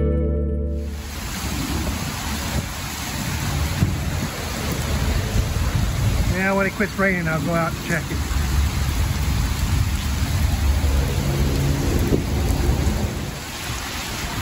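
Rain falls steadily on wet pavement outdoors.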